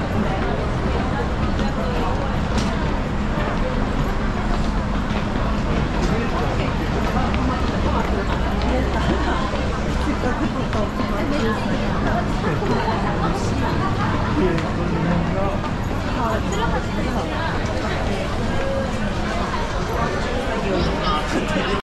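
A crowd murmurs and chatters steadily all around.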